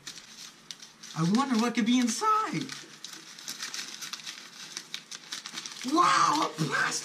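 Paper crinkles and rustles in a young man's hands.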